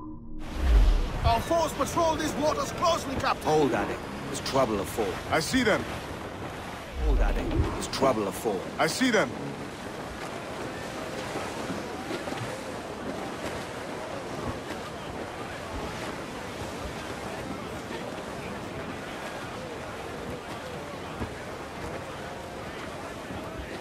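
Wind and waves rush steadily past a sailing ship.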